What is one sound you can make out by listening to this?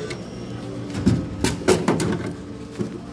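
A plastic bottle thuds down into a vending machine's bin.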